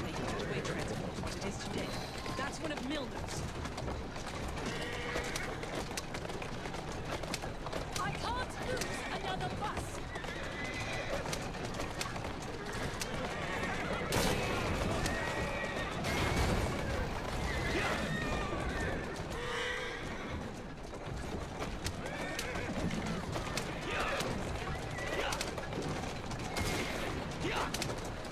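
Horse hooves clatter and carriage wheels rumble over a wet street.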